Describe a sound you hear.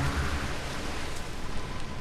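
A river flows and laps gently.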